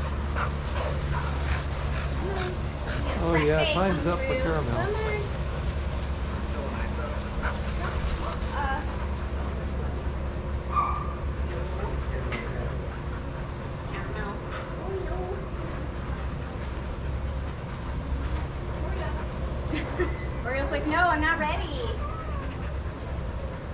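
Dogs' paws patter on sand.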